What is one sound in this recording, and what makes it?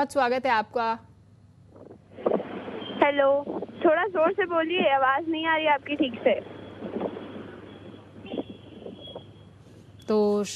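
A woman speaks clearly into a microphone.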